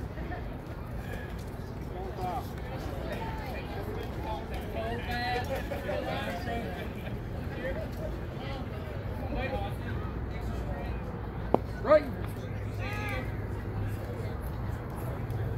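Men and women talk and call out across an open field outdoors.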